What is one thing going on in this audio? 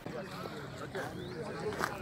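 A man speaks into a microphone outdoors.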